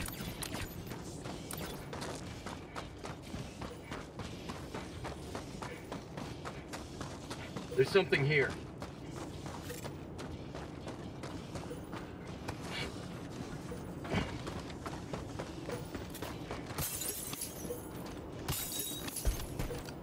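Heavy footsteps crunch over wet ground at a run.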